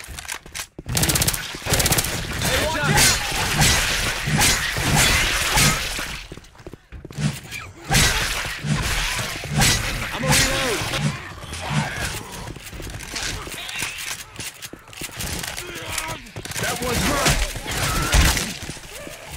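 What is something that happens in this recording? A blunt weapon thuds hard into bodies again and again.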